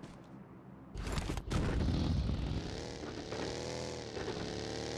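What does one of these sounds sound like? A dune buggy engine starts and revs as it pulls away in a video game.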